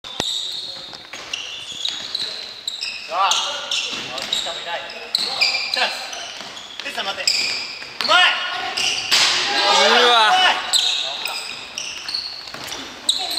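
Sneakers squeak sharply on a hard floor in an echoing hall.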